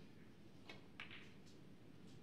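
Snooker balls knock together.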